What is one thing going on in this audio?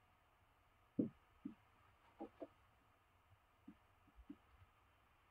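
A marker taps and squeaks on a whiteboard.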